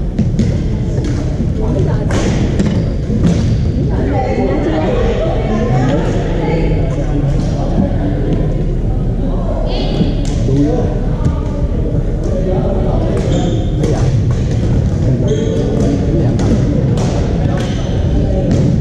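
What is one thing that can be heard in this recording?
Players' voices call out and echo in a large hall.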